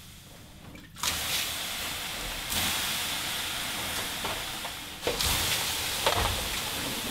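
Water hisses and sizzles loudly on hot stones.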